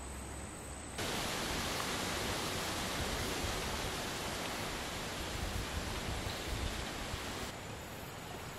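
Wind blows outdoors and rustles leaves.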